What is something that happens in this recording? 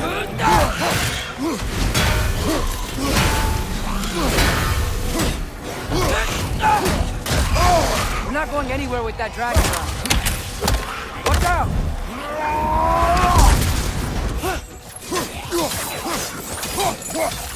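Fiery blasts whoosh and roar in bursts.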